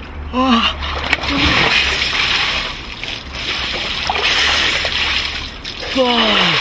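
Water splashes and sloshes in a tub.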